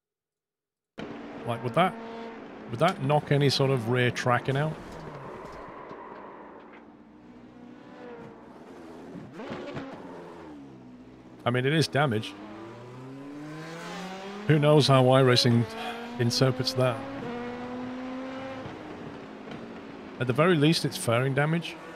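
A racing car engine revs high and whines as it shifts gears.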